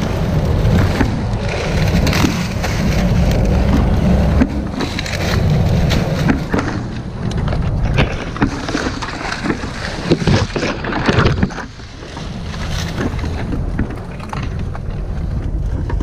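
Dry palm fronds rustle and scrape close by.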